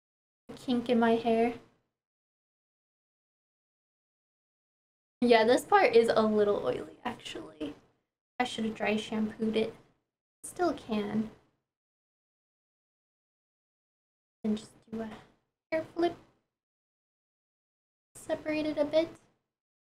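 A young woman talks calmly and clearly into a close microphone, with pauses.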